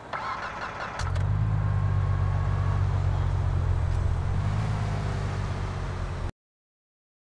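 A car engine starts and idles with a low rumble.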